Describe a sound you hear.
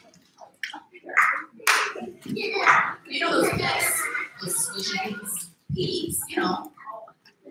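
A young girl speaks with animation in a hall.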